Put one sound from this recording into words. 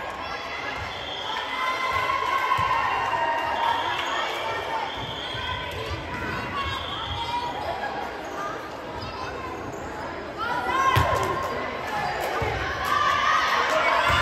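A volleyball thuds off a player's hands.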